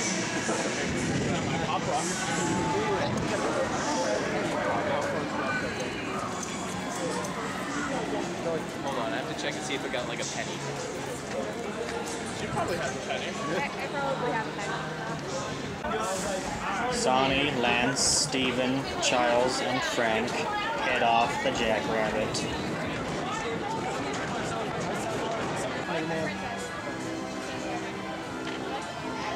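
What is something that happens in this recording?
Young people talk with animation close by.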